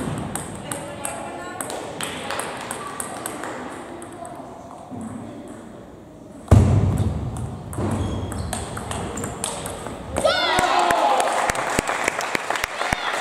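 A table tennis ball clicks back and forth in a large echoing hall.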